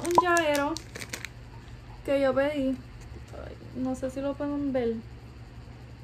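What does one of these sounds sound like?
A plastic bag crinkles in hands.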